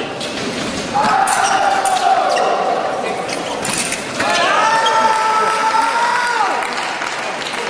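A young man shouts loudly in a large echoing hall.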